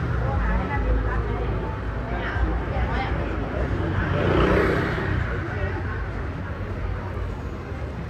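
Footsteps scuff on pavement nearby.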